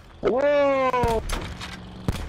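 A young man shouts loudly into a microphone.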